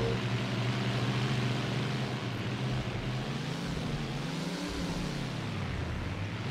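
A car engine hums steadily, its pitch dipping and rising briefly.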